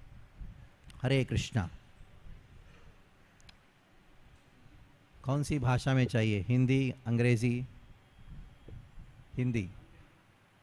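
A man speaks calmly and with warmth into a microphone, with pauses between phrases.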